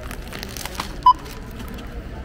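A checkout scanner beeps once.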